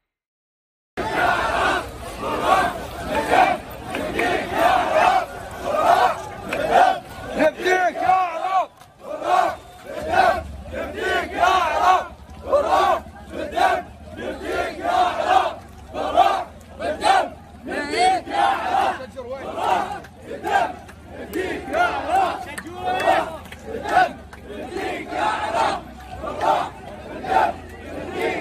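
A large crowd chants loudly in rhythm outdoors.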